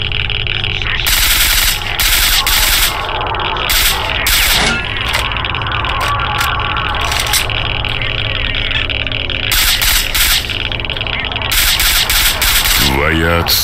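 A rifle fires in rapid loud bursts, echoing in a hard enclosed space.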